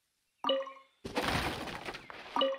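Plants rustle as they are gathered.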